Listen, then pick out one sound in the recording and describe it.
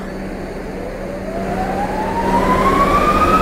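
A subway train's motor whines, rising in pitch as the train speeds up.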